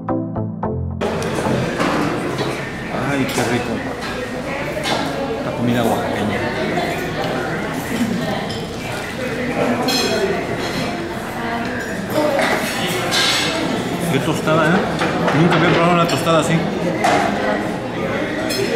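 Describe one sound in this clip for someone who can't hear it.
A man talks casually close by.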